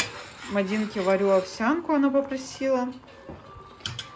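A spoon stirs and scrapes inside a metal pot.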